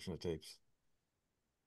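A man speaks briefly and calmly into a microphone, heard over an online call.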